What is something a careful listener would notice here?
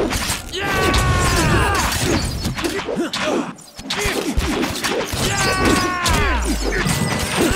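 Magic spells crackle and whoosh.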